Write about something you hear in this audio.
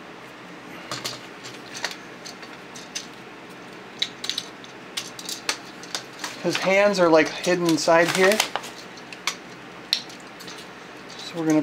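Plastic toy parts click and snap as they are moved.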